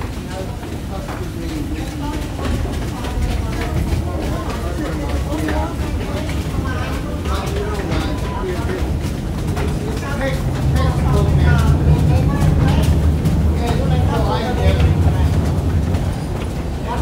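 An escalator rumbles and hums steadily.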